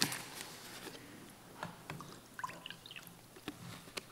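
A plastic water bottle crinkles and its cap twists open.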